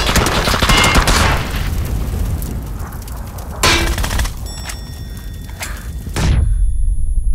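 A vehicle fire roars and crackles loudly.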